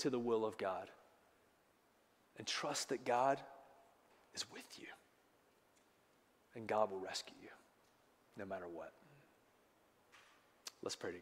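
A man speaks calmly with pauses, heard through a microphone in a large room.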